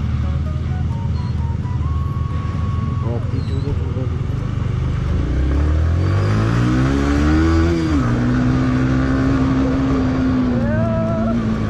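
A motorcycle engine runs close by, revving up and then settling.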